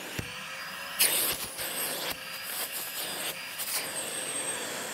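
A plastic hose knocks and clicks as it is attached.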